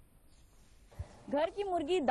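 A young woman speaks clearly into a microphone, reporting.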